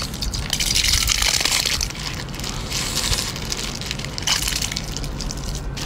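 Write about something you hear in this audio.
Clams rattle and splash as they pour from a bag into a bowl.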